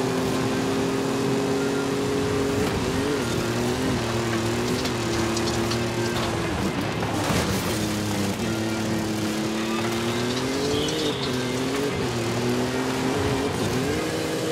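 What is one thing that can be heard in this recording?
A racing engine roars steadily, its pitch rising and falling as gears shift.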